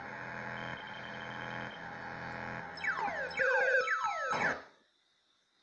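Electronic video game sounds warble and glide from a television.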